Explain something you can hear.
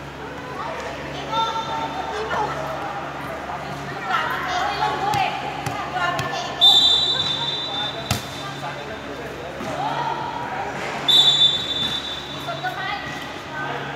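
Young women call out to each other in a large echoing hall.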